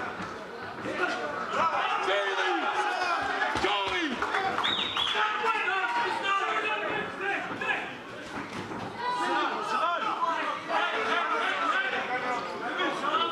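A crowd shouts and cheers loudly throughout.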